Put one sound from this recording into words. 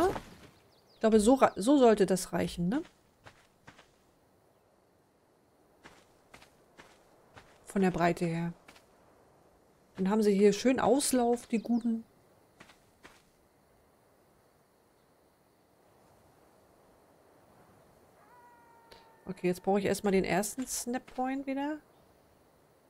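A woman talks calmly into a close microphone in short bursts.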